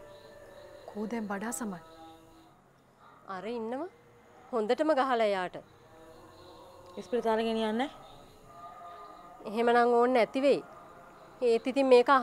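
A woman speaks loudly and urgently, close by.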